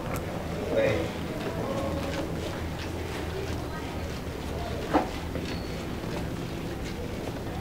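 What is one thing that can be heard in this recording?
Footsteps tap along a hard floor in an echoing hallway.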